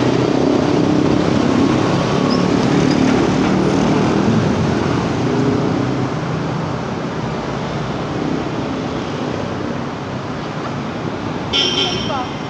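Traffic rumbles steadily along a busy street close by.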